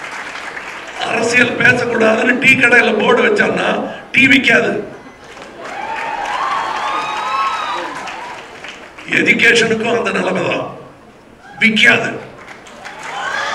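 An audience cheers and applauds in loud bursts.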